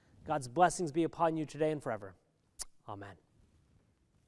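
A man speaks with emphasis through a microphone.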